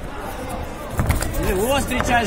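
A punch lands with a sharp thud.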